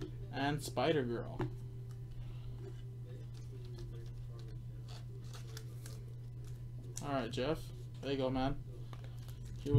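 A foil card wrapper crinkles in hands.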